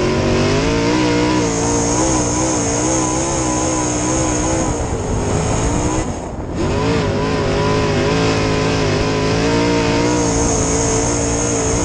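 A race car engine roars loudly up close, its pitch rising and falling as the driver lifts off and accelerates.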